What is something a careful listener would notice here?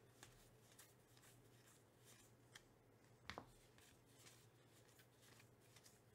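Trading cards are flipped and shuffled by hand with soft rustling and flicking.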